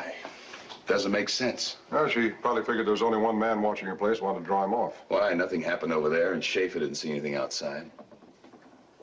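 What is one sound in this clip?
A second man answers in a low, puzzled voice.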